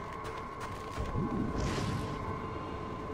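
A cape snaps open with a sudden whoosh.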